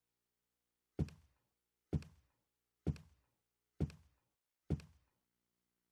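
Heavy footsteps thud slowly up wooden stairs.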